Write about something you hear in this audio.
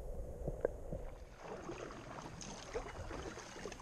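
A kayak paddle dips and drips in calm water.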